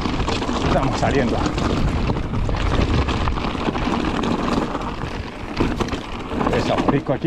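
Bicycle tyres crunch and rattle over loose stones.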